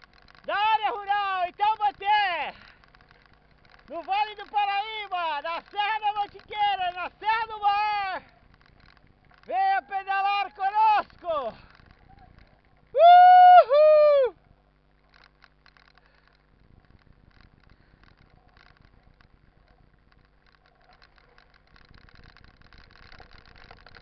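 Bicycle tyres crunch over a gravel road.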